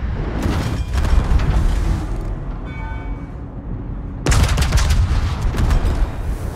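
Shells explode against a ship with loud bangs.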